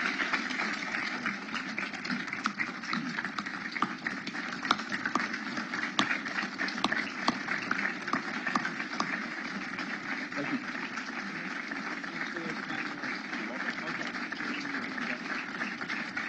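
A large crowd applauds steadily in a hall.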